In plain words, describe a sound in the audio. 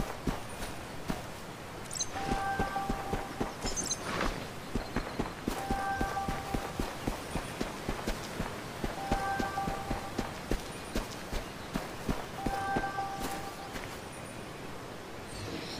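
Footsteps patter steadily on the ground.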